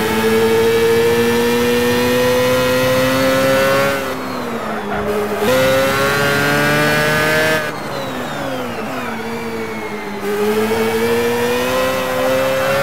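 An open-wheel racing car's engine screams at high revs, dropping in pitch as the driver lifts off for corners.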